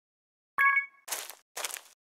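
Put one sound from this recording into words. A bright game chime rings once.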